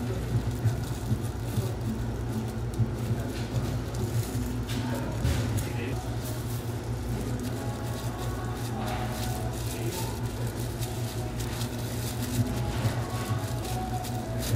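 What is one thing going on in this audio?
Plastic gloves crinkle and rustle close by.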